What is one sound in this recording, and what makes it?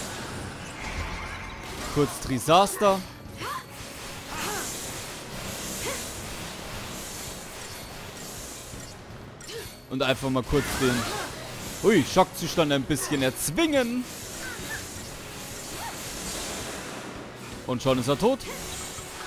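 Magic blasts whoosh and crackle.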